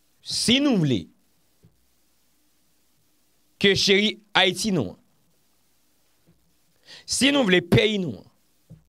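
A young man speaks calmly and closely into a microphone, in short phrases with pauses.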